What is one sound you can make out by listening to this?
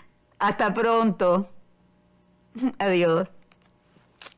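An elderly woman talks cheerfully on a phone, close by.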